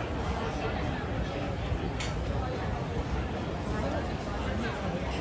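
A crowd of people chatter in the distance outdoors.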